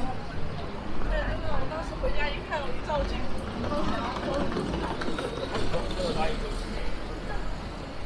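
Passers-by chatter in the background of a busy street.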